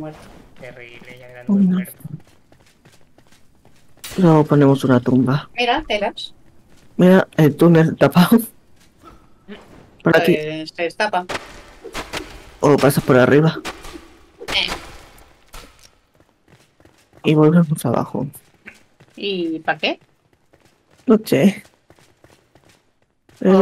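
A young woman talks with animation into a microphone, close by.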